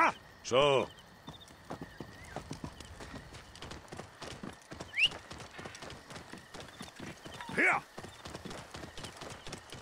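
A camel's hooves plod over sand.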